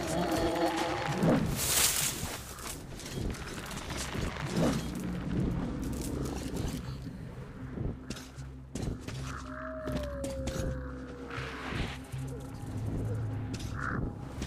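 Footsteps crunch through grass and gravel.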